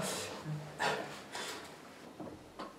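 A young man laughs softly close by.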